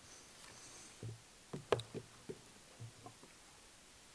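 Dull thumps and knocks sound close to a microphone.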